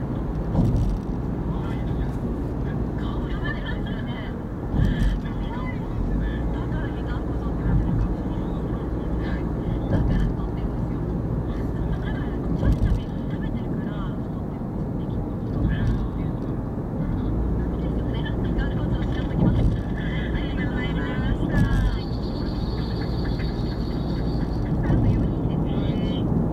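A car's engine and tyres rumble steadily on a highway, heard from inside the car.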